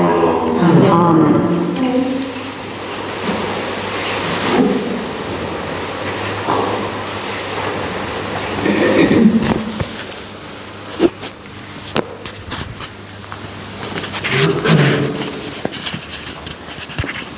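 An elderly man chants and speaks slowly through a microphone in an echoing hall.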